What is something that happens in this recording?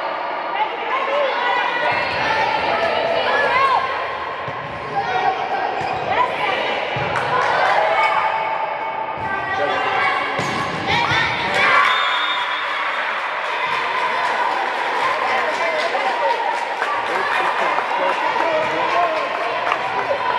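A crowd chatters throughout the echoing hall.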